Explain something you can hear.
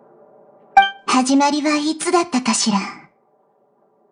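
A young girl speaks softly and calmly, heard close up.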